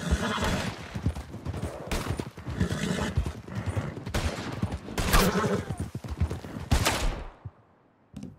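Horses gallop with hooves thudding on a dirt trail.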